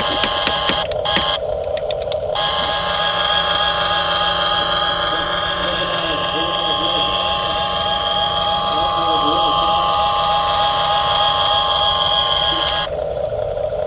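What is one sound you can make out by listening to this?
A small electric motor whines steadily as a toy excavator's arm swings and lifts.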